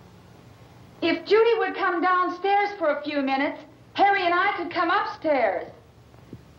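A woman speaks tensely and close by.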